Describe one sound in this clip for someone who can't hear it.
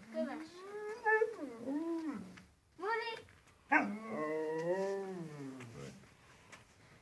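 A dog whines and howls in long wavering cries close by.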